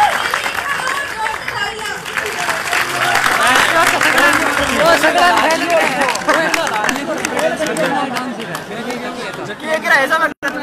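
People clap their hands.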